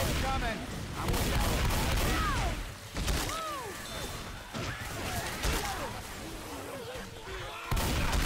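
A shotgun fires in loud blasts.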